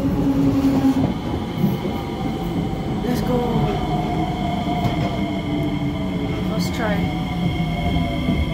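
Train brakes squeal as a train slows to a stop.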